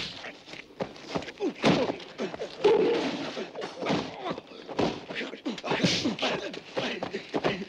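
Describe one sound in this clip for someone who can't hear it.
Men grunt and shout as they scuffle up close.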